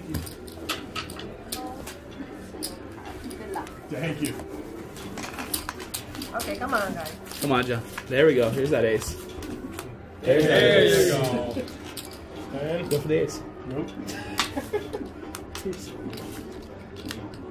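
Casino chips click together as they are stacked and placed.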